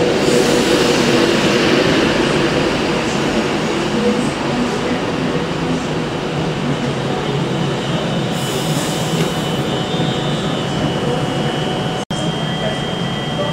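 A train rolls slowly along the track and comes to a stop.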